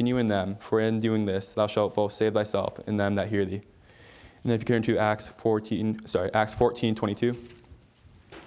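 A man reads aloud calmly through a microphone.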